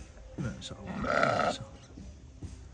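A sheep bleats loudly nearby.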